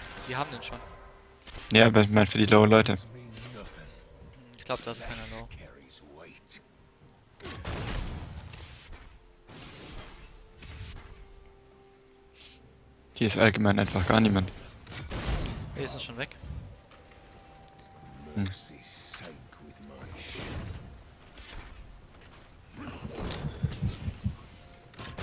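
Magic blasts and sword hits crackle and thud in short bursts.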